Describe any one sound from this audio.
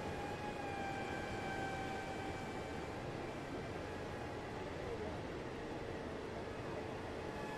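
Train wheels rumble on the track.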